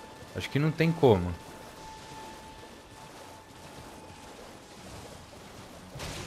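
A horse splashes through shallow water.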